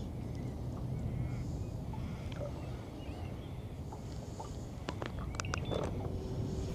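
Wind gusts and rumbles outdoors across open water.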